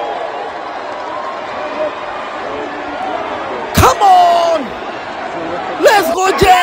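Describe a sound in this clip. A large crowd chatters and cheers in an echoing arena.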